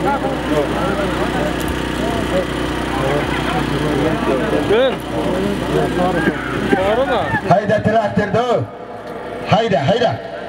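A crowd of men shout and call out outdoors.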